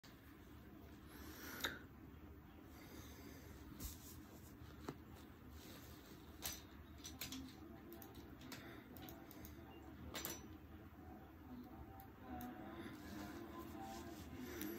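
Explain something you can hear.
Hands brush and rub against skin close by.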